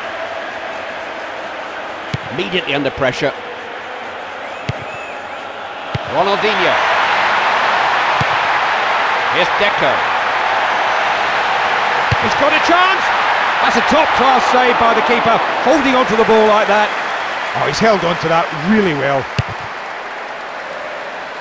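A large stadium crowd cheers and murmurs steadily, growing louder.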